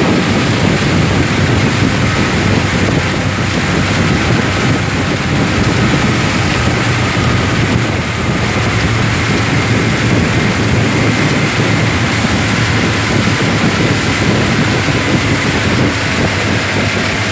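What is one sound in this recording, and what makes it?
Water splashes and hisses against a speeding boat's hull.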